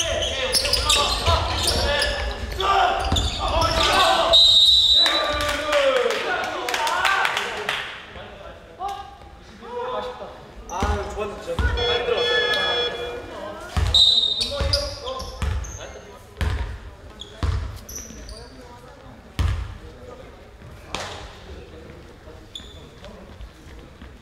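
A basketball bounces on the floor with dull thumps.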